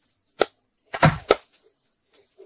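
A heavy fish thumps down onto a wooden block.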